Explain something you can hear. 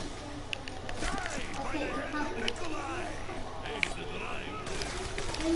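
Zombies groan and snarl close by.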